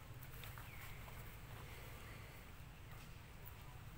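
Dry leaves rustle as a monkey shifts on the ground.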